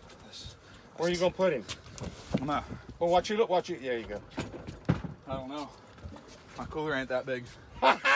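An older man speaks casually, close by.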